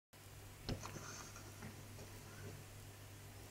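A button clicks as a finger presses it.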